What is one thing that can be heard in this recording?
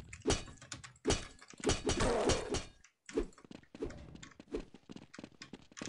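A knife slashes through the air.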